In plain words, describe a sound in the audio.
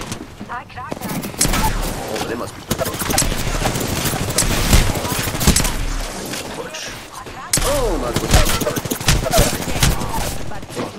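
Rapid gunfire bursts close by.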